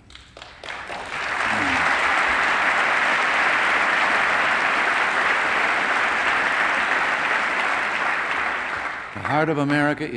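A crowd applauds loudly.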